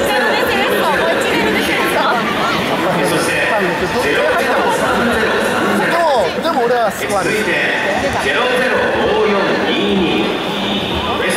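Young men call out to each other on an open field.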